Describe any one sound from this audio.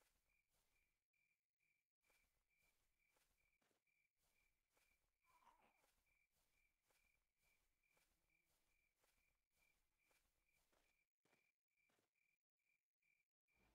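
Footsteps tread softly over grass and leaves.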